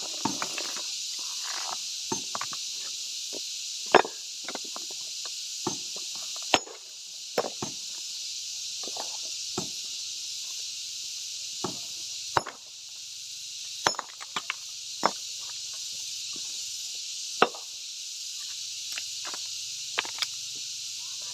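A sledgehammer strikes stone with sharp, ringing knocks.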